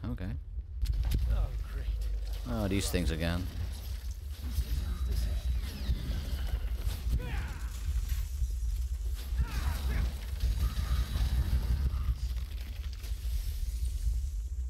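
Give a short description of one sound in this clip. Heavy blows and explosions thud and crash in a fight.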